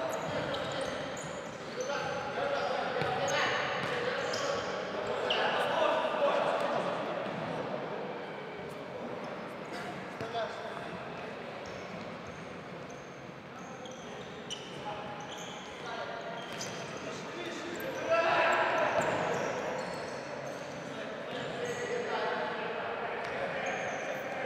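Sneakers squeak on a hall floor.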